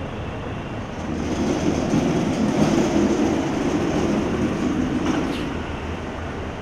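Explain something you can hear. A car engine hums as a car pulls away.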